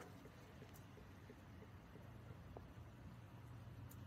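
Liquid trickles into a small plastic cup.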